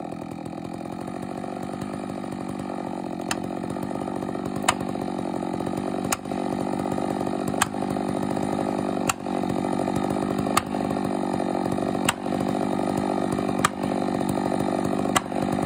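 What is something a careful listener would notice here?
A chainsaw engine runs steadily close by.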